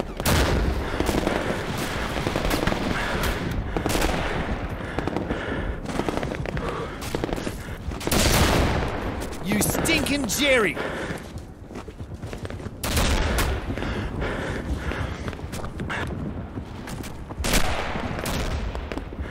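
Footsteps run quickly over sand and dirt.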